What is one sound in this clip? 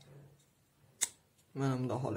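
A plastic connector clicks into place.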